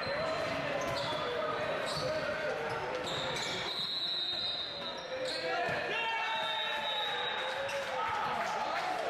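A crowd of spectators chatters steadily.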